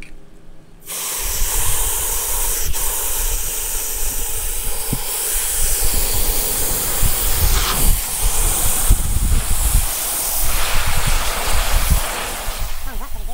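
Water splashes and churns loudly as a bucket fills.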